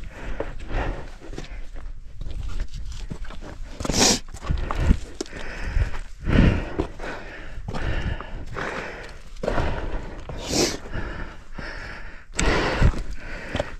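Hands scrape and grip rough rock.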